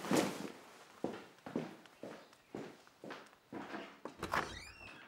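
Footsteps walk away.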